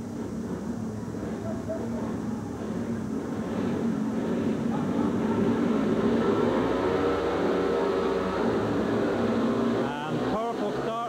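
Motorcycle engines rev loudly and roar away from the start.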